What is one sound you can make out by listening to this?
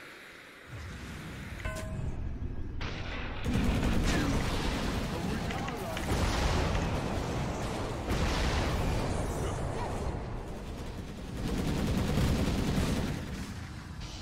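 Game battle effects crash and rumble loudly.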